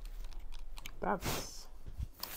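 A man speaks briefly and casually, close to a microphone.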